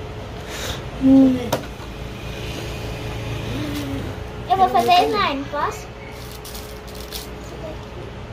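Plastic packaging rustles as a child handles toys.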